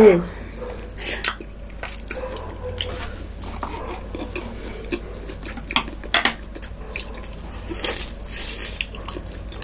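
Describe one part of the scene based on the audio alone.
A young woman slurps noodles loudly and close to the microphone.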